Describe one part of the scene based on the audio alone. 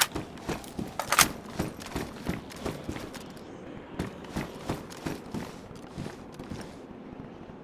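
Boots thud in steady footsteps on hard concrete stairs.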